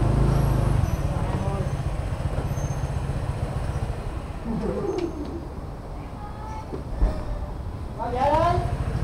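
A motorbike engine idles with a low rumble.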